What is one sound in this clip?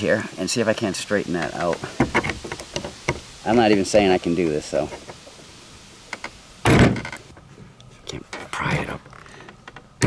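Metal pliers click against a pipe fitting.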